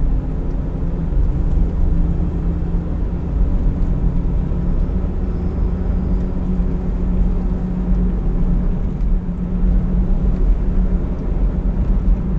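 Tyres rumble on a rough road.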